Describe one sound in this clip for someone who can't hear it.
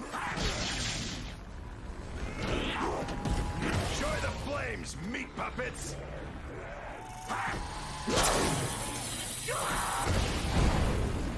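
Electric blasts crackle and boom.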